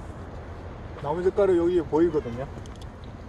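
A middle-aged man talks, outdoors.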